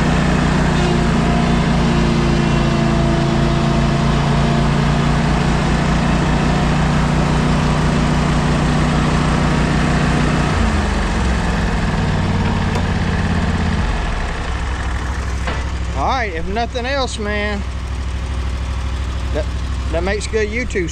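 A riding mower engine drones steadily nearby, then slows and goes quieter.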